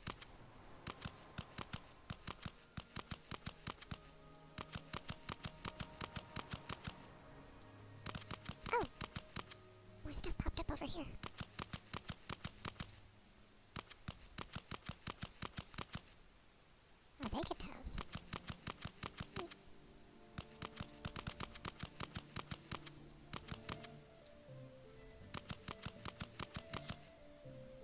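Footsteps crunch steadily over snow.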